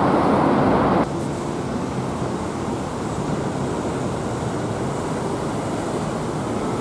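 Road traffic rumbles steadily nearby.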